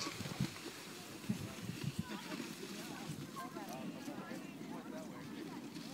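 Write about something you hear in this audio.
A sled scrapes and hisses over snow.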